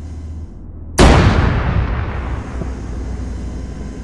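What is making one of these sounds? A loud explosion booms and rumbles slowly away.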